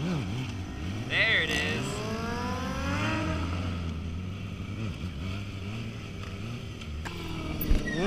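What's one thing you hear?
A sport bike engine revs up and down.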